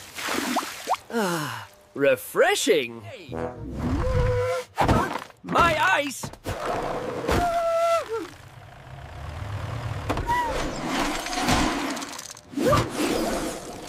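A cheerful cartoon voice speaks with animation.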